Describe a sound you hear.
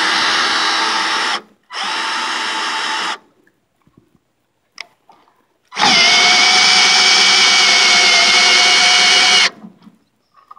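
A cordless drill whirs loudly in several bursts.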